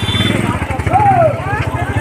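A motorbike engine hums along a road.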